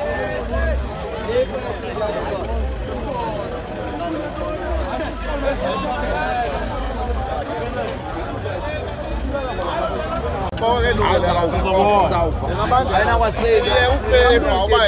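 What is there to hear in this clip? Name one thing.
A crowd of men and women talk loudly nearby outdoors.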